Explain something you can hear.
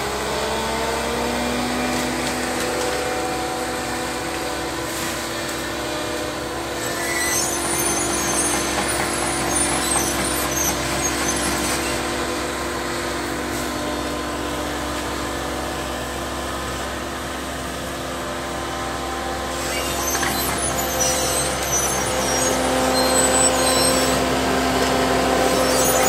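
A tracked excavator's diesel engine hums steadily close by.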